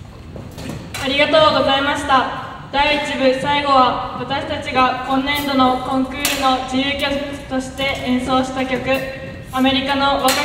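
A wind band plays a lively tune in a large, echoing hall.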